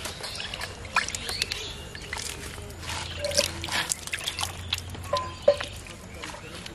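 Fish thrash and splash in a tub of water.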